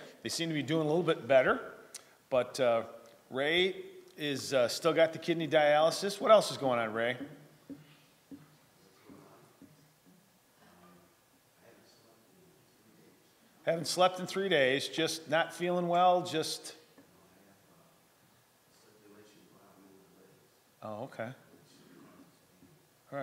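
A middle-aged man speaks calmly into a microphone in a large echoing room.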